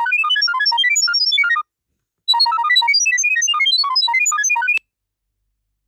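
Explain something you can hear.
A phone plays a rapid string of high, chirping electronic tones.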